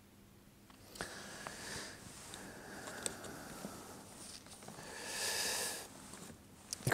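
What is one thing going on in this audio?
Pages of a book rustle.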